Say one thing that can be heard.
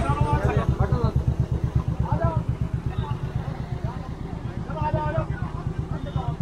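A motorcycle engine idles with a steady low thumping close by.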